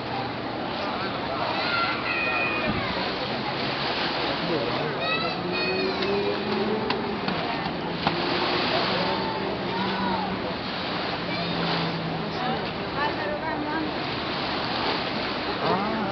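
Small waves wash and lap against a muddy shore.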